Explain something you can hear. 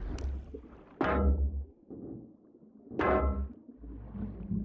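A wooden chest creaks open underwater.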